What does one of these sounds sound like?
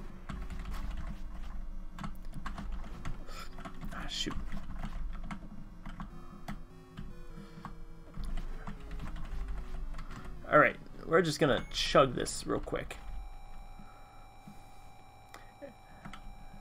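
Retro electronic game music plays with bleeping effects.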